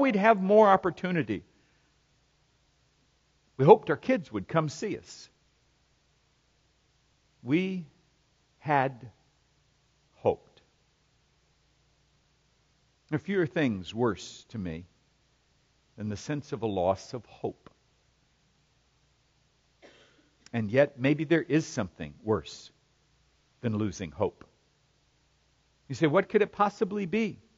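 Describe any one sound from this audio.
A middle-aged man speaks with animation into a microphone, in phrases broken by pauses.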